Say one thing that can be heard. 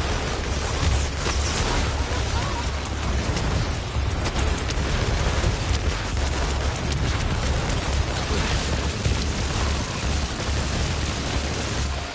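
Energy blasts crackle and whoosh in a fast-paced game.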